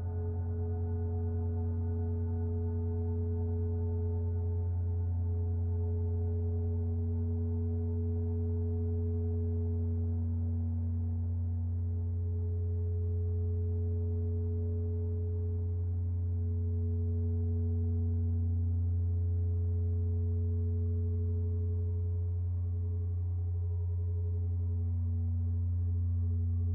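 A modular synthesizer plays a low, steady droning tone that slowly shifts in colour.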